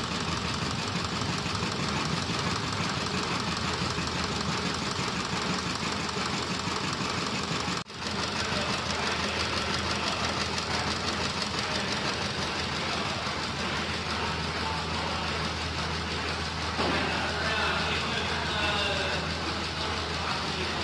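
A machine rumbles and rattles steadily as it shakes a metal panel.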